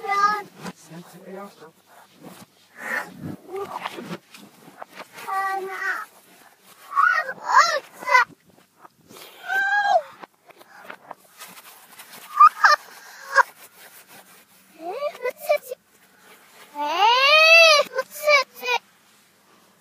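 A young person talks with animation close by.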